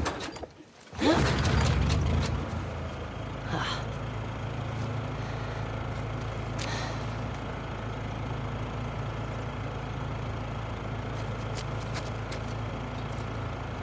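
A generator engine roars to life and settles into a steady low hum.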